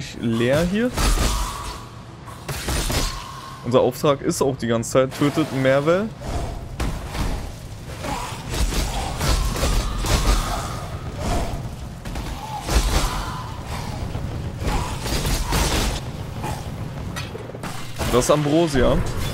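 Fiery blasts and explosions boom repeatedly.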